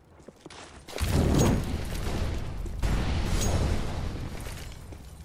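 A grenade bursts with a loud, rumbling roar that slowly fades.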